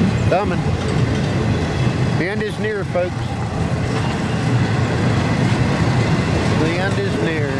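Train wheels squeal on the rails now and then.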